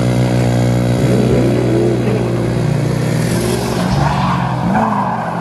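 Tyres squeal on asphalt as a pickup drifts.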